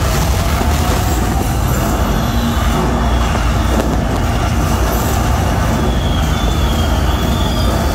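Fireworks boom with deep bangs.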